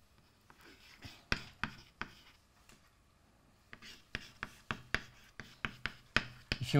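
Chalk taps and scrapes on a blackboard in quick bursts.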